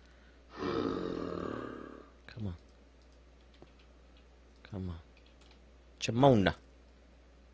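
A zombie groans in low, drawn-out moans.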